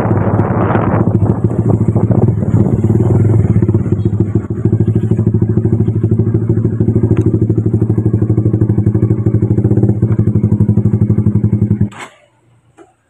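A motorcycle engine runs with a steady rumble, then cuts out.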